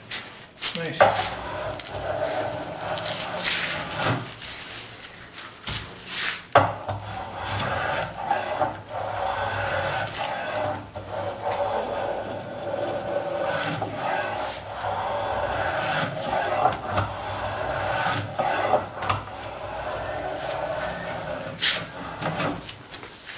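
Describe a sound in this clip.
A hand plane scrapes along wood in repeated strokes.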